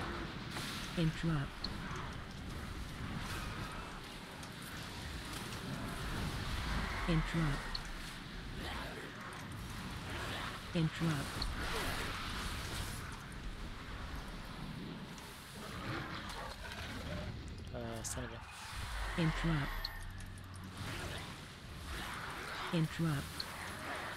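A young man talks steadily into a close microphone.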